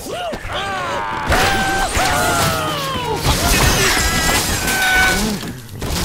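A wooden structure breaks apart with crashes and cracks.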